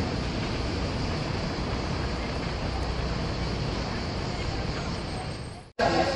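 A car drives over a level crossing.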